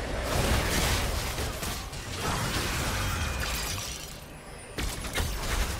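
Game ability impacts thud and burst.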